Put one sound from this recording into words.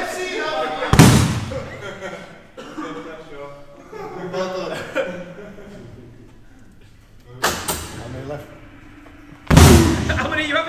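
A fist thumps hard into a boxing machine's punch bag.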